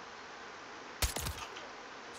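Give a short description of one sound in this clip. A rifle fires a single sharp shot.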